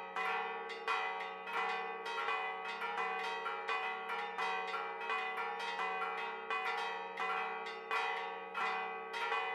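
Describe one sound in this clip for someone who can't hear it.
Church bells ring out in a rapid, continuous peal.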